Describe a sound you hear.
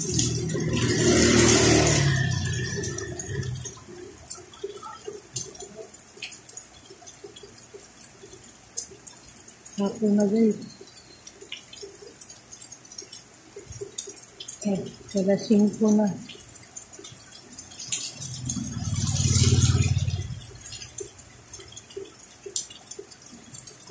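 Heavy rain falls on a wet road.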